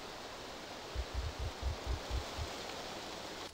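Footsteps thud softly through grass.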